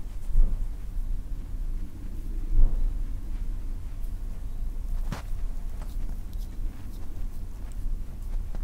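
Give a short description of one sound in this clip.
Oiled hands rub and squeeze a bare foot with soft, wet slipping sounds.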